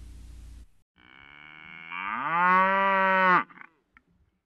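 A cow moos loudly.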